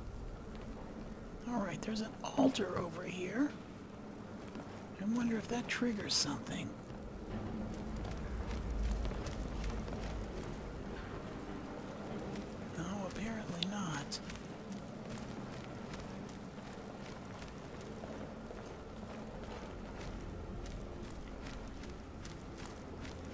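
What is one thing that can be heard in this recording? Magic spells crackle and hum steadily from both hands.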